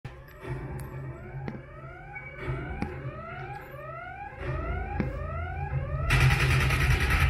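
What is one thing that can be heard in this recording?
Video game sounds play through a speaker, with quick rising tones repeating over and over.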